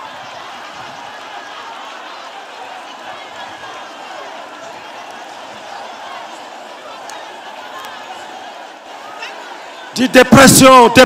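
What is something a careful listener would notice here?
A large crowd murmurs outdoors in the distance.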